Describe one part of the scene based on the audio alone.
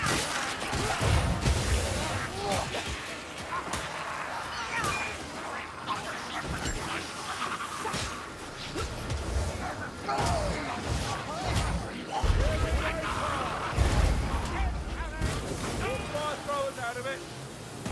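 Heavy weapon blows thud and squelch into bodies, over and over.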